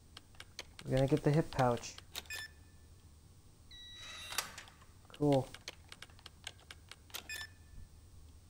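Keypad buttons beep as they are pressed.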